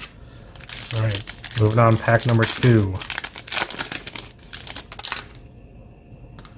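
Trading cards rustle and flick against each other in a pair of hands.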